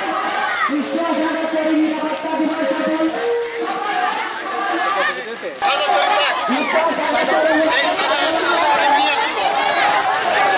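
A crowd of men and women murmurs outdoors.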